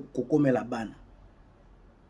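A man speaks briefly and animatedly into a close microphone.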